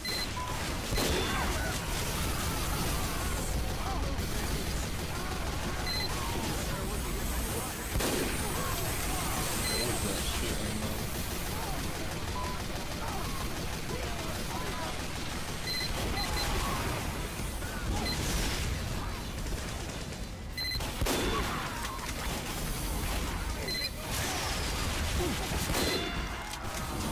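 Rifle shots crack loudly now and then.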